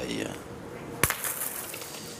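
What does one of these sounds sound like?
A metal boule lands with a sharp clack.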